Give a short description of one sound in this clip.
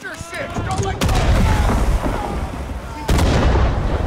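Fireworks burst and crackle loudly nearby.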